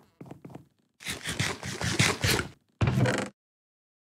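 A wooden chest lid opens with a creak.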